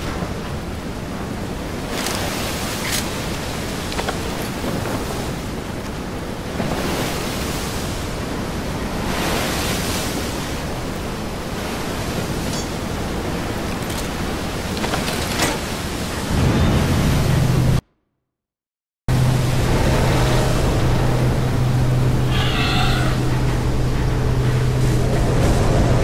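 Stormy sea waves crash and splash nearby.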